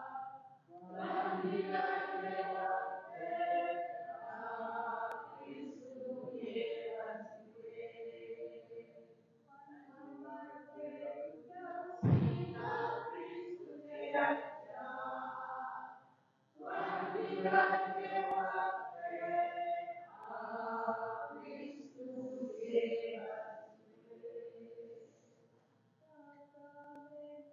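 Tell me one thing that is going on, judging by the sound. A man chants steadily through a microphone in a reverberant hall.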